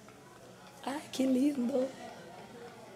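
A young woman laughs softly up close.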